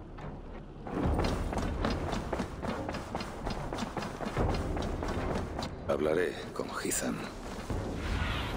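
Footsteps thud quickly across a wooden floor.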